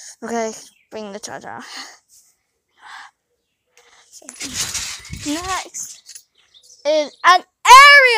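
A young girl talks close by, with rising, sing-song exclamations.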